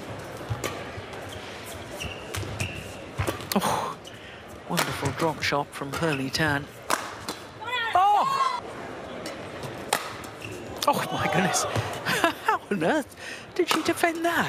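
Rackets smack a shuttlecock back and forth in a quick rally.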